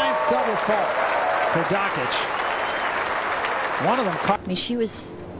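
A crowd cheers and applauds loudly, then quiets.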